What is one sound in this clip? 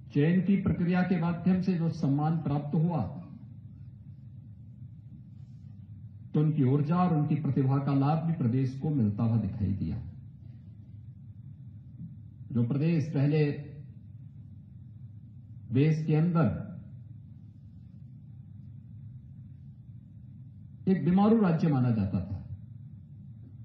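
A middle-aged man speaks slowly and firmly into a microphone, with pauses between phrases.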